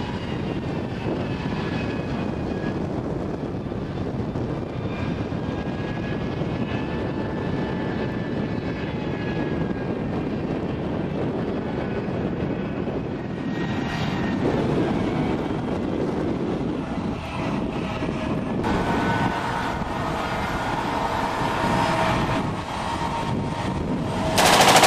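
A tank engine roars steadily as the tank drives over rough ground.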